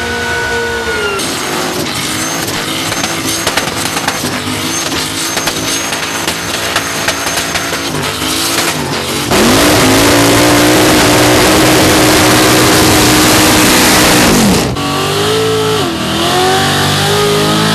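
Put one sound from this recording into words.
Tyres squeal and screech loudly against the track.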